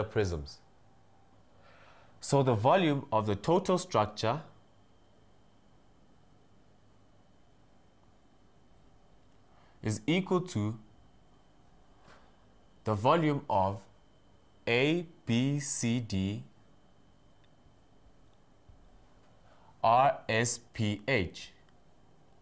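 A young man speaks calmly and clearly, explaining.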